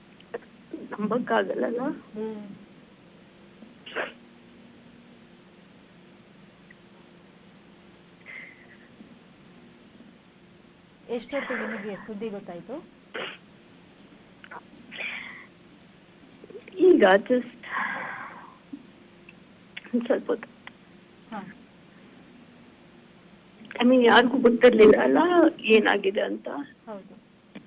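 A woman speaks over a phone line in short bursts with pauses.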